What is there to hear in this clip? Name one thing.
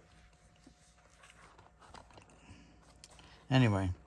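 A binder page flips over.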